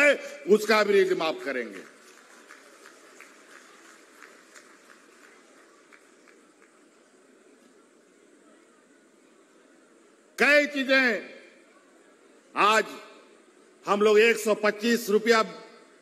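A middle-aged man speaks forcefully into a microphone through loudspeakers, with pauses between phrases.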